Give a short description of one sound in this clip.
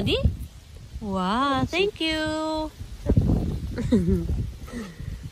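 A woman speaks close by in a high, playful sing-song voice.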